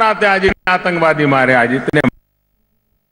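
A man speaks forcefully into a microphone.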